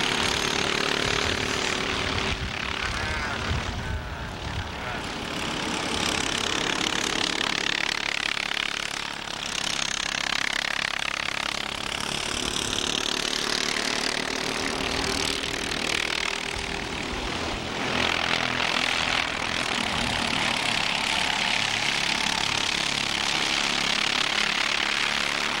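Kart engines whine loudly as karts race past.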